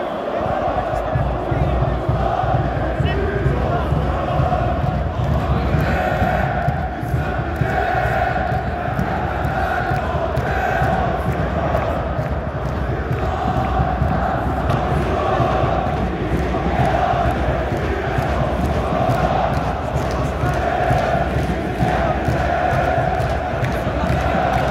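A large crowd of football fans chants loudly in unison in an open stadium.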